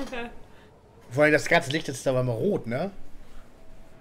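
A woman talks and laughs.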